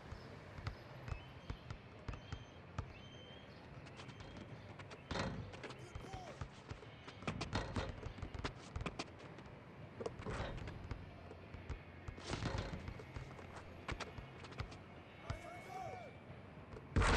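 Sneakers squeak on the court.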